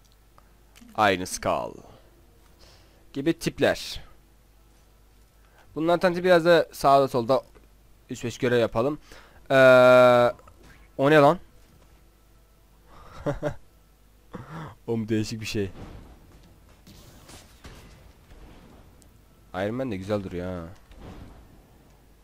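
A young man talks with animation into a headset microphone, close by.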